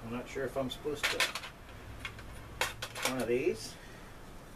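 Small objects clink against a metal tin.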